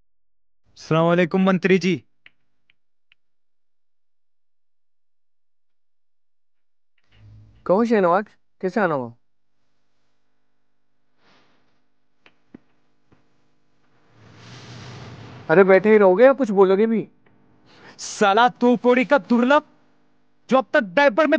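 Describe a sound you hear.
A young man speaks calmly and close by, in short bursts.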